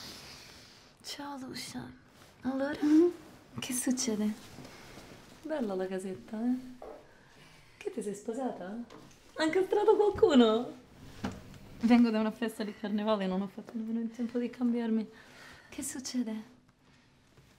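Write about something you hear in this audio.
A woman speaks softly and warmly up close.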